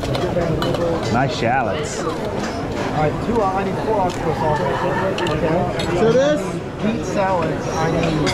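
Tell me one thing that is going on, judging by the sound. Metal spoons clink against dishes.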